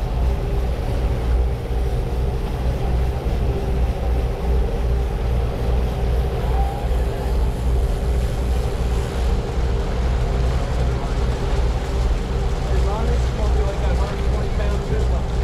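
Wind blows across the open sea.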